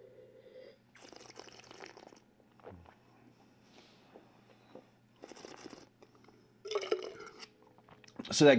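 A man sniffs loudly.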